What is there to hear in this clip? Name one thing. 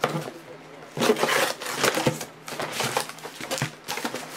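A cardboard box scrapes and taps as it is handled.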